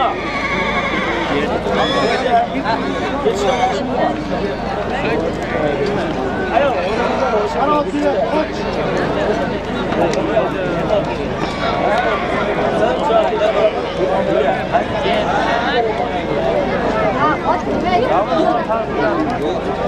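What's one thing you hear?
Many men shout and call out over each other outdoors.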